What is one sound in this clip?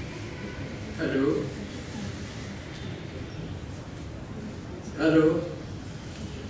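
An older man speaks briefly, close by.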